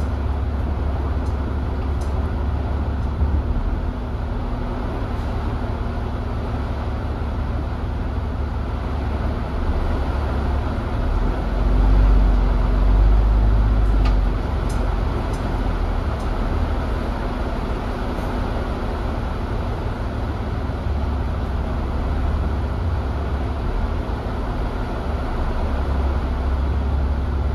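A bus engine rumbles low and steadily.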